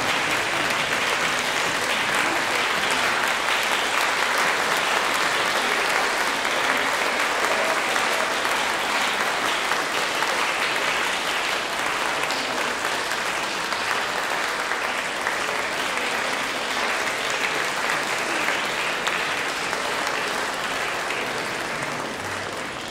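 An audience applauds loudly in a large hall, slowly fading toward the end.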